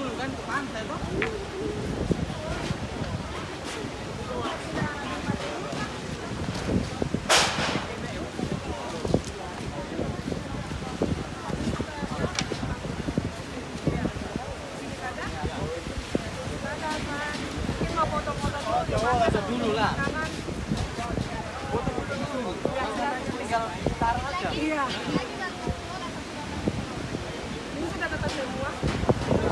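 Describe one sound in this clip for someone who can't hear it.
A crowd of men and women chatter and shout outdoors.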